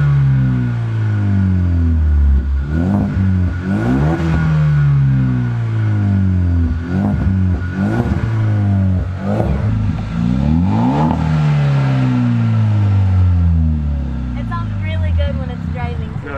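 A car engine revs loudly again and again through its exhaust.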